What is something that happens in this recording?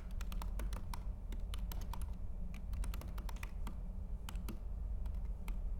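Keys clatter quickly on a keyboard.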